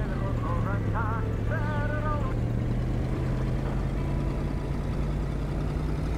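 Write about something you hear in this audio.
A car engine rumbles steadily while driving.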